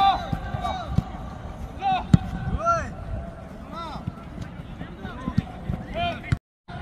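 Young men call out in short shouts.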